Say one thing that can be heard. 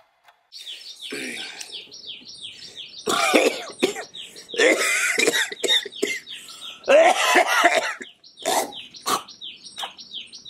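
A man coughs hard and hoarsely, close by.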